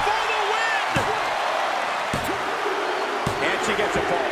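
A referee slaps the mat in a slow count.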